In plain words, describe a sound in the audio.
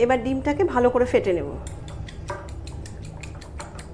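A fork whisks eggs, clinking against a bowl.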